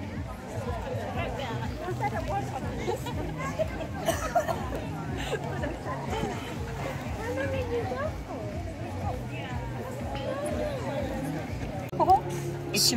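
A crowd of men and women chatters outdoors at a distance.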